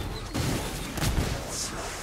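A fiery blast bursts with a loud whoosh.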